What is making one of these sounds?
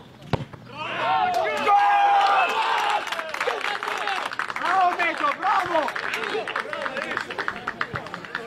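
Young men cheer and shout excitedly after a goal.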